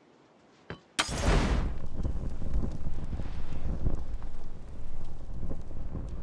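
A fire bursts into flame and roars with crackling.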